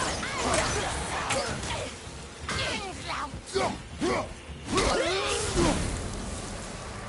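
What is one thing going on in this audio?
Weapon blows strike hard during a fight.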